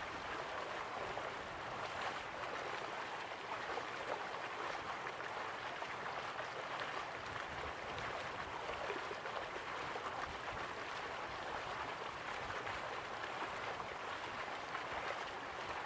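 Waterfalls rush and splash steadily in the distance.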